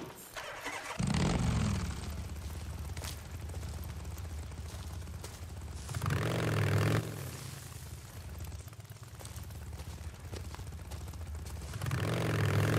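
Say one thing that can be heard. A motorcycle engine starts and idles.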